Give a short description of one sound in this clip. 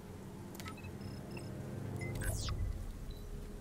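Electronic keys beep as buttons are pressed on a console.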